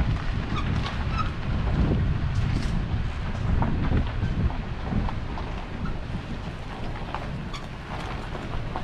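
Wind blows outdoors, rumbling against the microphone.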